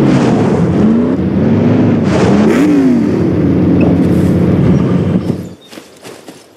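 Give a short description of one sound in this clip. A car engine revs and idles loudly.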